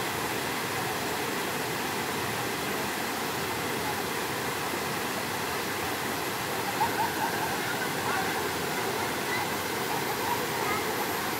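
Water splashes as people wade and play.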